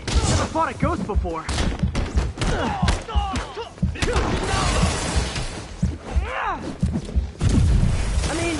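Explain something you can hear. Punches land with heavy thuds in a fight.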